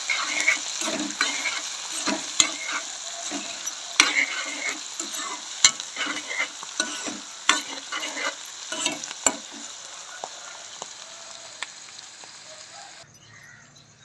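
Vegetables sizzle and crackle in hot oil.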